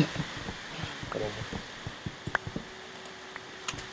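Leaves rustle and crunch as they break apart.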